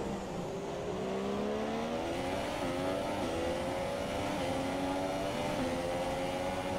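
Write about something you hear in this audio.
A racing car engine roars and rises in pitch as it shifts up through the gears.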